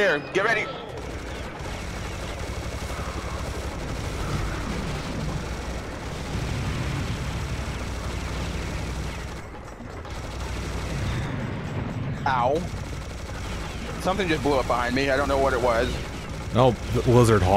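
A minigun fires rapidly in a steady, rattling roar.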